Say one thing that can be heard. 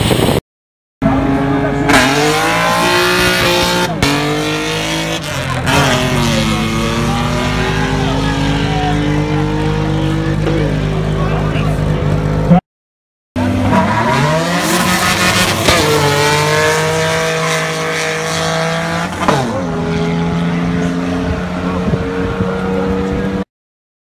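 Car engines rev hard, rising and falling in pitch.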